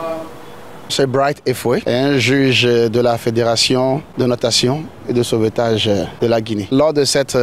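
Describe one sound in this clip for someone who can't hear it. A man speaks calmly and clearly into a microphone close by.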